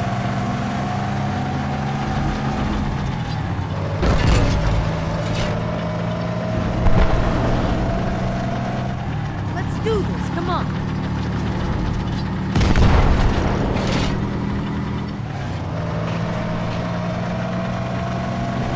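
A heavy vehicle's engine rumbles steadily as it drives.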